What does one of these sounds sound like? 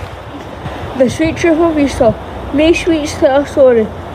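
A boy speaks up close, reading out with animation.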